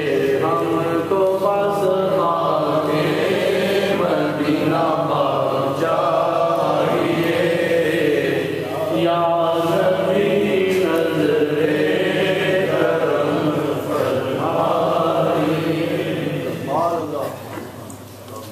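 A man chants melodiously into a microphone, heard through loudspeakers in an echoing hall.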